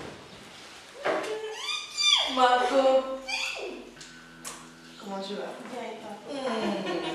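A young woman shrieks and laughs with excitement close by.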